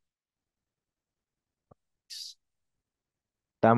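A mouse clicks once.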